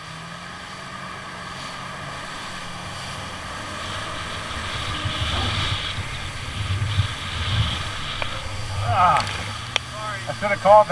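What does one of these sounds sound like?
A jet ski engine drones steadily outdoors on open water.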